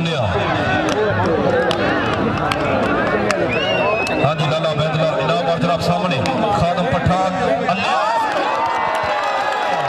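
A large crowd of men shouts and cheers outdoors.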